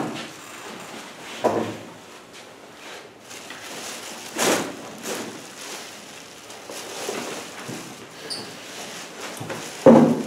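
Metal dishes clink softly.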